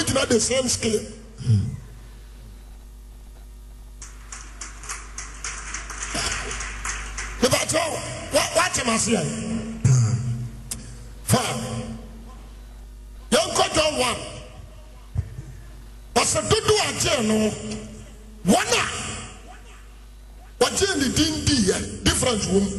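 A man preaches forcefully into a microphone in a large echoing hall.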